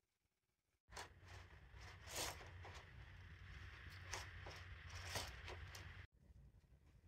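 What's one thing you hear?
A bead chain rattles as a window blind is pulled.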